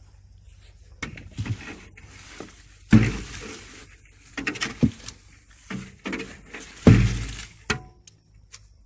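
A metal tool scrapes and clanks inside a metal barrel.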